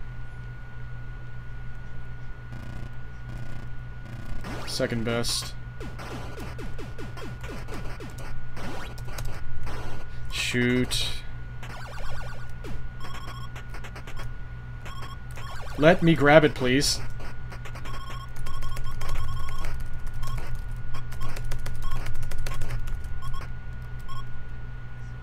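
Retro video game sound effects beep and chirp in quick bursts.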